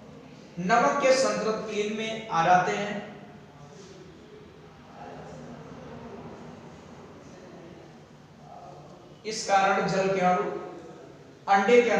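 A man speaks calmly and clearly, close by, explaining at a steady pace with pauses.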